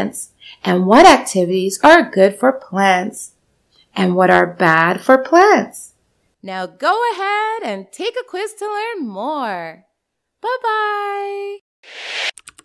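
A woman narrates calmly through a microphone.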